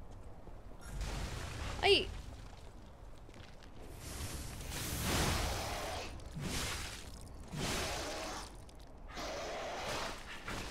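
Heavy blows and whooshes of combat crash in loud bursts.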